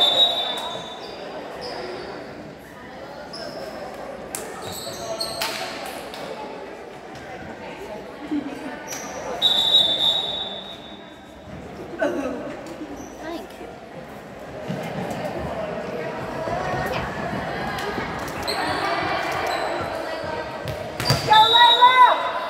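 Shoes squeak sharply on a hardwood court.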